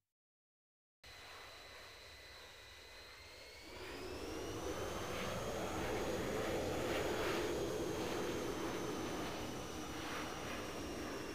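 A jet engine whines steadily, then rises to a loud roar.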